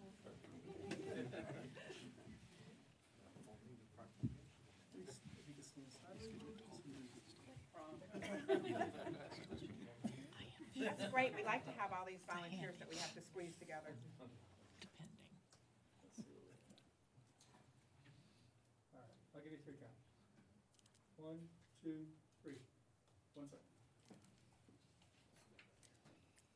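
A group of men and women chat and murmur among themselves in a large room.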